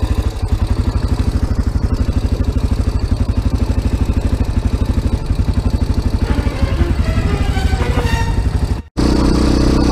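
A quad bike engine idles with a rapid, even putter.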